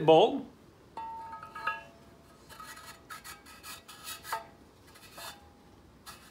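A metal rod scrapes and clicks as it slides into a metal bore.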